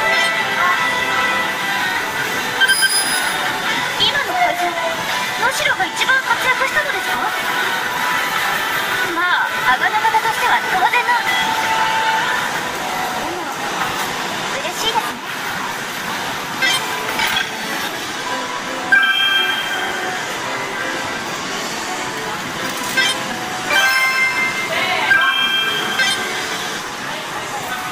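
Upbeat game music plays loudly through a loudspeaker.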